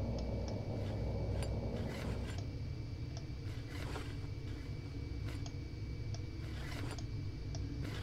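A small disc clicks into place several times.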